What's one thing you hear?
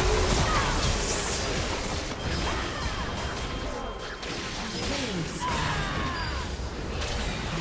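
Magic spells whoosh and crackle in a fast fight.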